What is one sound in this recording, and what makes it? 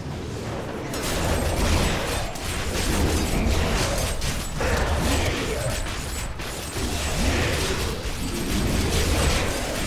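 Game spells and weapons crash and blast in dense bursts.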